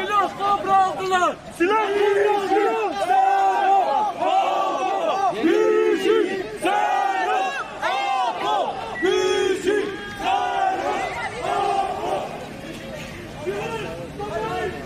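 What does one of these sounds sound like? A crowd of young men chants loudly in rhythm outdoors.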